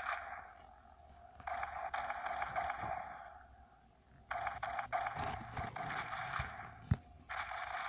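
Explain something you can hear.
A rifle fires shots in quick bursts.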